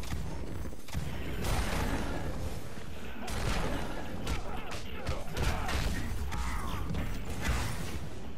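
An energy blast bursts with a fiery roar.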